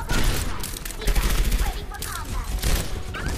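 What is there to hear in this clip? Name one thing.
Video game gunfire crackles in short bursts.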